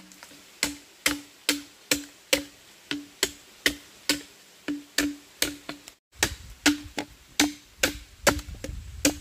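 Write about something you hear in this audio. A machete chops rhythmically into green bamboo.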